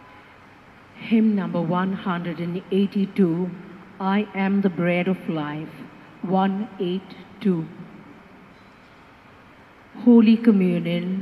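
A man speaks slowly through a microphone and loudspeaker in an echoing hall.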